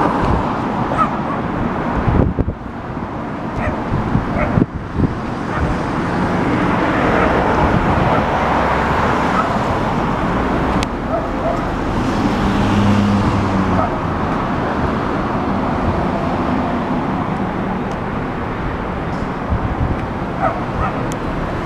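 A motorcycle engine idles with a steady low rumble nearby.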